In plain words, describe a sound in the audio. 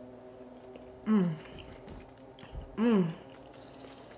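A young woman hums while chewing.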